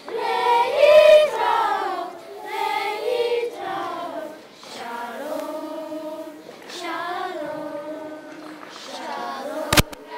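A choir of young children sings together in a large room.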